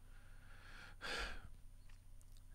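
An elderly man chuckles softly.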